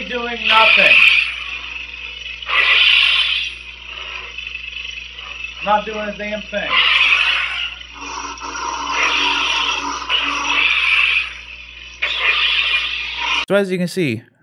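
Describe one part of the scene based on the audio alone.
A lightsaber toy hums and swooshes as it is swung.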